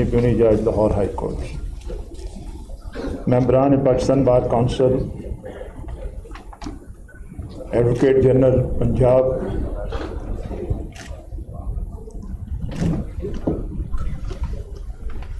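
A middle-aged man speaks calmly and firmly into a microphone, in an echoing room.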